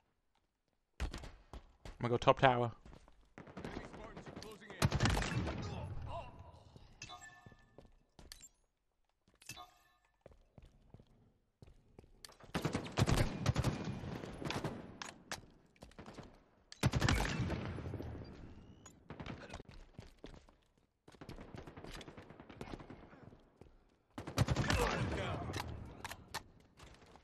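Rapid gunfire bursts out from a game.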